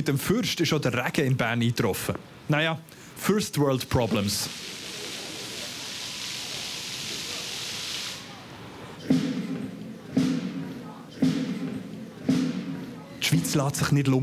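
A young man talks calmly into a microphone, close by.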